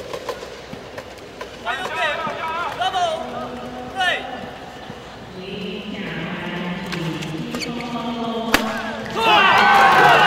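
A shuttlecock is struck sharply with rackets again and again.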